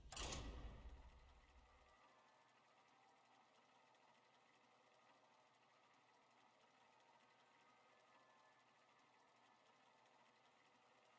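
A low mechanical whirring hums steadily.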